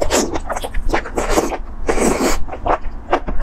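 A young woman slurps noodles loudly up close.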